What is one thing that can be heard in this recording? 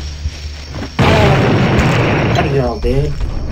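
A fireball explodes with a loud roaring blast.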